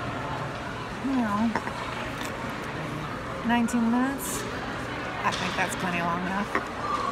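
A middle-aged woman speaks calmly close to the microphone.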